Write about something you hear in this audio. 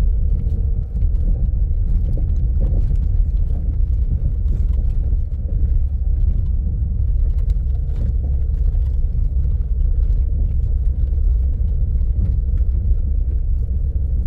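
A vehicle drives along a dirt track, with its engine rumbling low as heard from inside.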